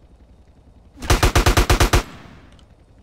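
A burst of rapid gunfire rattles loudly.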